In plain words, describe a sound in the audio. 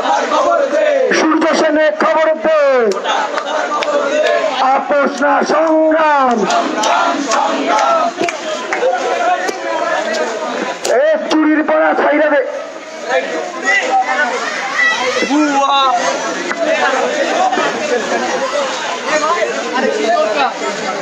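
A large crowd of young men chants and shouts loudly outdoors, close by.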